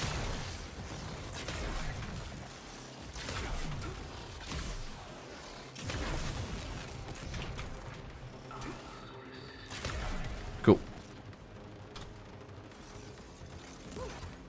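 Footsteps thud quickly on a metal floor.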